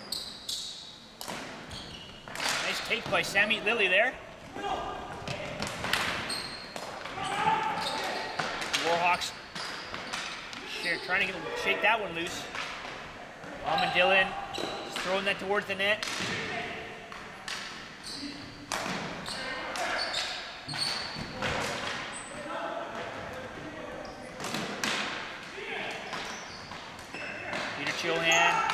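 Hockey sticks clack and slap a ball on a hard floor, echoing in a large hall.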